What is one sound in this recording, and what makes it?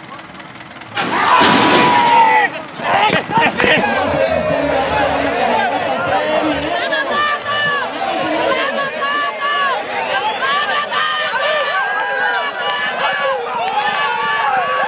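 Spectators shout and cheer outdoors.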